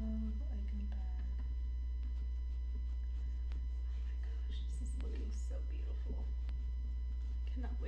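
A cloth rubs and wipes across a leather bag.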